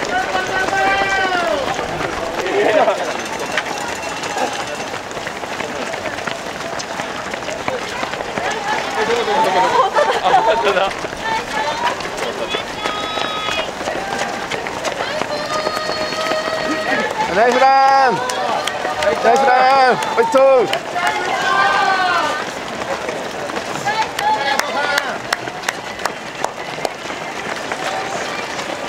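Many running feet patter on pavement.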